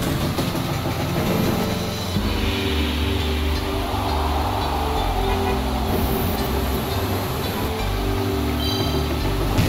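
A small kart engine hums steadily.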